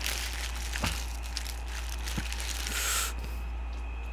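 Paper wrapping crinkles close to a microphone.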